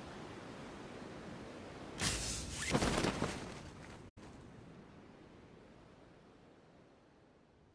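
Wind rushes steadily and slowly fades.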